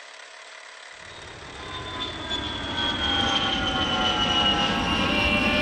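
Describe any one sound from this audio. A jet plane roars by overhead, its whine slowly dropping in pitch.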